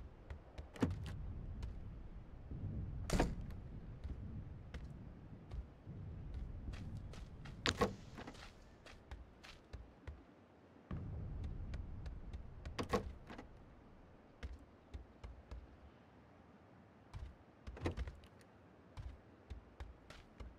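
Footsteps thud.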